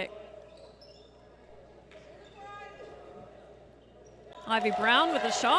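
Sneakers squeak on a wooden court in an echoing hall.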